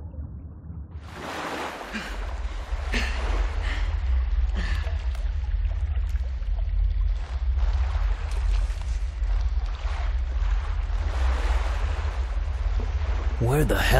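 Water splashes as people wade through it, echoing in a cave.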